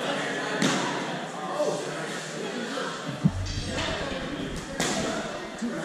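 Feet thump on a padded mat.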